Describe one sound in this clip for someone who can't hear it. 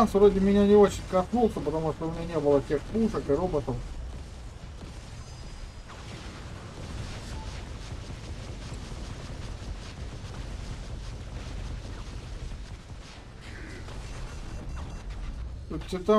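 Robotic guns fire in rapid bursts.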